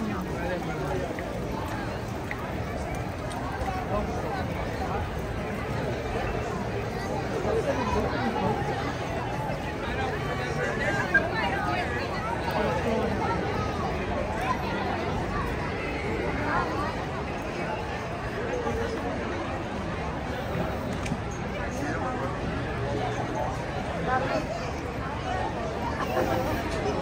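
A large crowd of men, women and children chatters all around outdoors.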